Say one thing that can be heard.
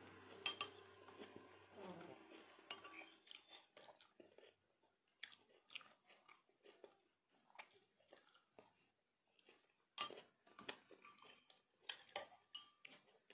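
A spoon clinks against a glass.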